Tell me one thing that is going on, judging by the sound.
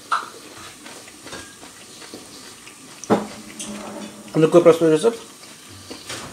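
Wet leaves swish and water splashes softly as a hand stirs them in a bowl.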